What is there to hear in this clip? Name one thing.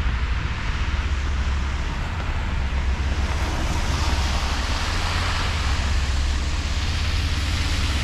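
Car tyres hiss on a slushy road nearby.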